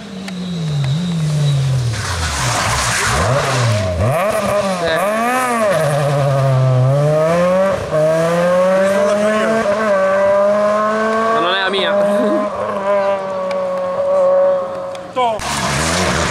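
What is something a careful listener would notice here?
A rally car engine revs hard and roars past, shifting gears as it pulls away.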